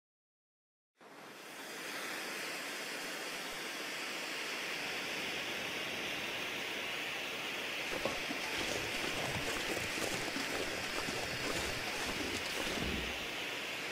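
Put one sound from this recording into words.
A flare burns with a steady, loud hiss.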